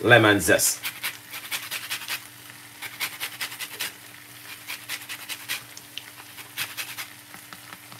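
A grater scrapes against a lemon.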